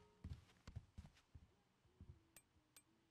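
Footsteps thud softly on a floor.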